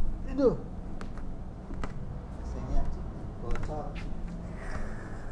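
Bare feet step softly on a floor and move away.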